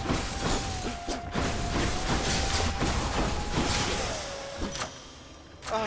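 Video game combat sounds clash and thud rapidly.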